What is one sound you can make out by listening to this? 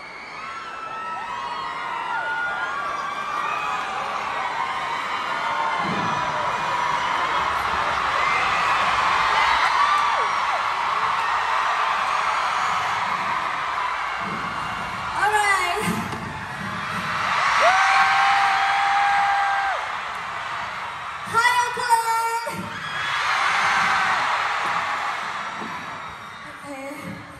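A large crowd screams and cheers in a big echoing hall.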